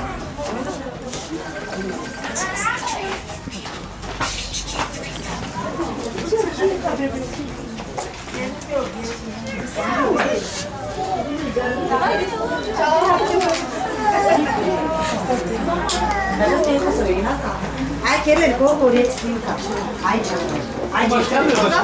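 A small crowd of men and women talk and call out nearby outdoors.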